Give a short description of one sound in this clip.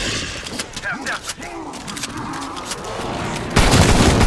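Zombies growl and snarl nearby.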